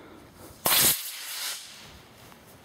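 A model rocket launches with a sharp rushing whoosh.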